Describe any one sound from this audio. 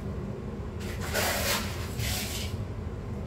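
Hands press and rustle soil in a pot.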